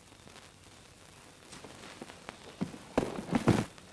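Footsteps shuffle in the dark.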